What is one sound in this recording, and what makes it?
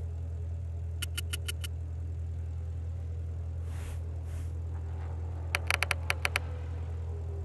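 Quick bright chiming ticks sound as a game's reward counter tallies down.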